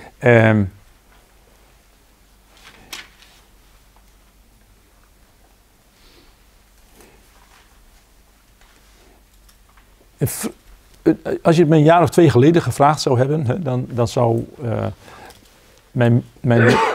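An older man speaks calmly and slowly, with long pauses, into a nearby microphone.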